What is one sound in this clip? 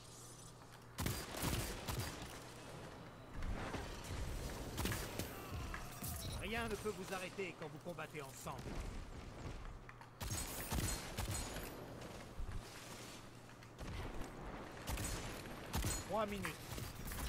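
Gunshots ring out sharply in a video game.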